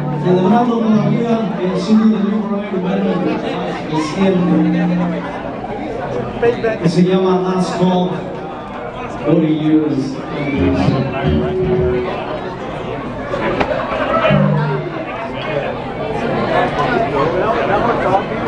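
A live band plays loudly.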